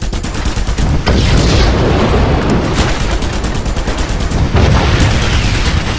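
Explosions boom and roar.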